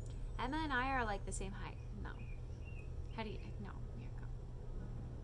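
A young woman speaks softly and playfully close by.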